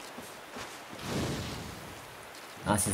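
A fireball whooshes as it is thrown.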